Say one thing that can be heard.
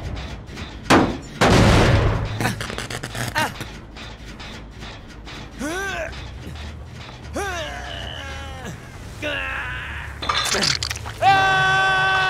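A metal engine clanks and bangs as it is struck.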